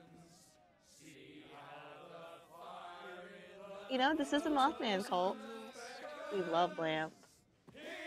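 A man sings a song.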